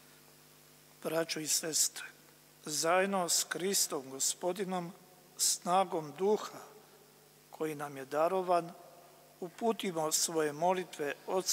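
An elderly man reads out calmly into a microphone in a large echoing hall.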